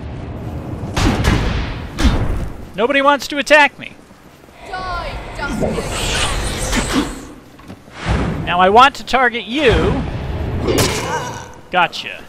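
Magic blasts burst with loud whooshes.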